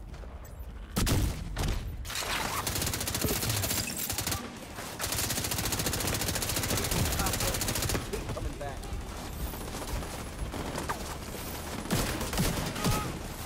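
Gunfire rattles in rapid bursts.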